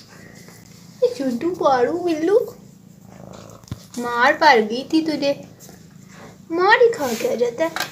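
A cat meows loudly, again and again.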